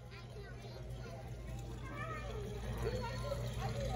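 Water laps softly as a hand dips into a shallow pool.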